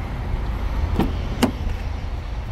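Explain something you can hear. A car door latch clicks as the door opens.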